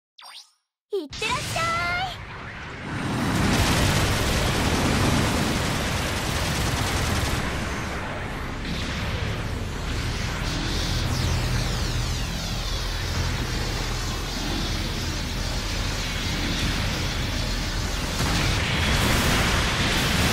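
Robot thrusters roar steadily.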